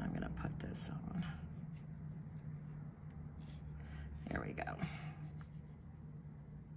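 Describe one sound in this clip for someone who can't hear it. Metal pliers click softly against a small metal pendant.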